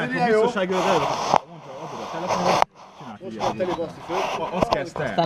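Several men talk and laugh loudly close by, outdoors.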